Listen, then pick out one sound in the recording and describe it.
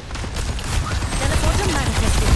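A loud magical whoosh bursts out.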